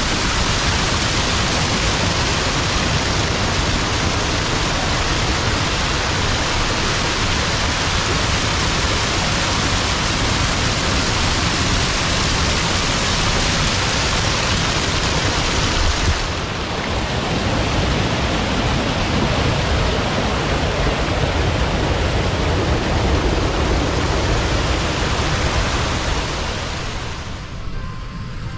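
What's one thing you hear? Water rushes and splashes loudly over a small waterfall close by.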